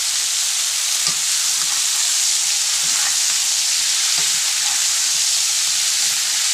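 A metal spatula scrapes and taps against the pan.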